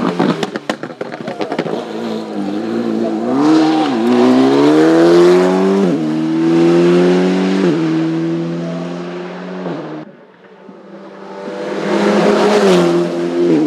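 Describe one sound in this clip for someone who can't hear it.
A race car engine roars loudly, revving up and down through the gears.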